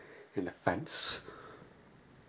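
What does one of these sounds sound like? A man groans and speaks in a strained voice close by.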